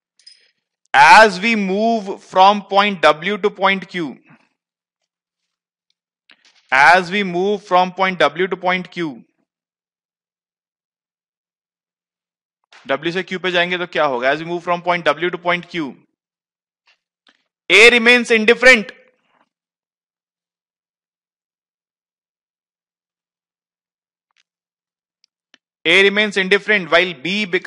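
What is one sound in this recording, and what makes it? A man lectures calmly through a headset microphone, in short phrases with pauses.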